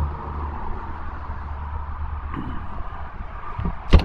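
A storage compartment door swings shut with a thud.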